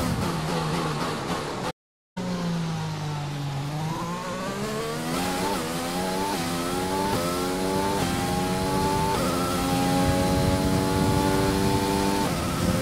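A racing car engine roars, climbing in pitch and dropping sharply with each gear change.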